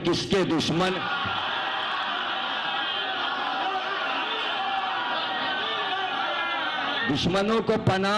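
A crowd of men chant together.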